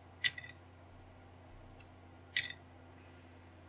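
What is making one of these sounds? Plastic model parts click together in a person's hands.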